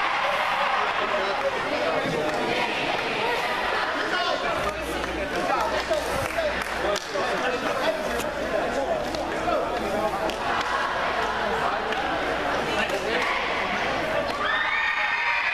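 A crowd of boys and men talk and shout at once in a large echoing hall.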